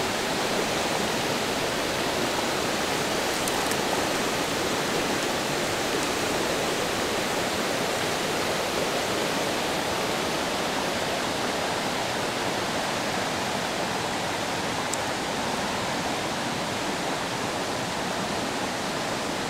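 A stream rushes and burbles steadily over rocks.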